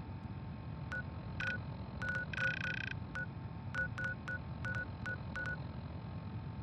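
Short electronic beeps chirp in quick succession.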